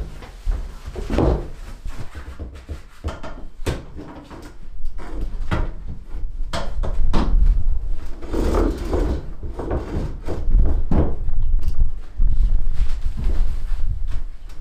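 A metal folding cot frame clanks and creaks as it is unfolded.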